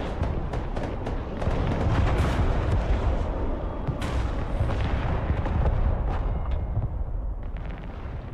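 Missile strikes explode with deep, rumbling booms.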